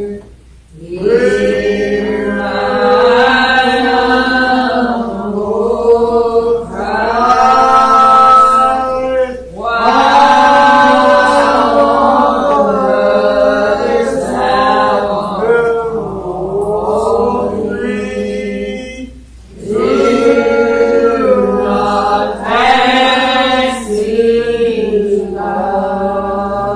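A congregation sings a slow hymn together in an echoing hall.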